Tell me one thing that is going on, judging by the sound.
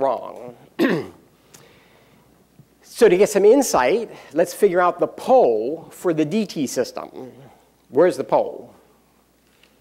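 A middle-aged man speaks to an audience in a large room, heard through a microphone.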